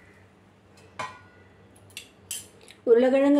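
A spoon taps against the rim of a metal pan.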